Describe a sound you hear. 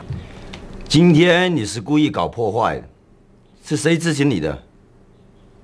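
A young man speaks calmly and coldly.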